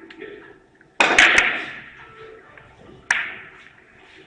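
Billiard balls click sharply against each other and thud off the cushions.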